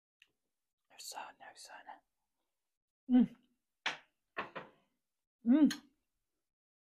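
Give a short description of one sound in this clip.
A woman chews food with soft smacking sounds up close.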